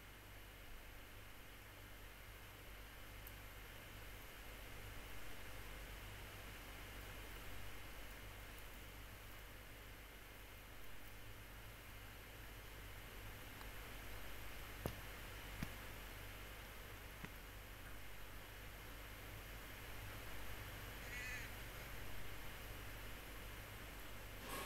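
A cat rustles through dry brush.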